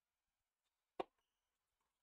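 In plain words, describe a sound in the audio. A racket strikes a tennis ball with a sharp pop.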